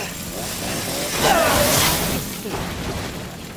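A young woman screams in terror.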